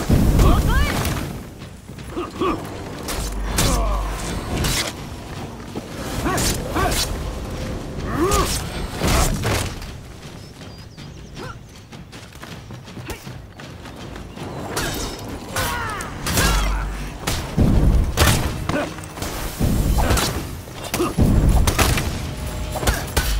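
Metal weapons clash and strike in a sword fight.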